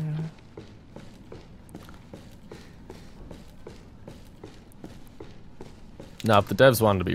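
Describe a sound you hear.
Footsteps walk steadily on a hard, gritty floor.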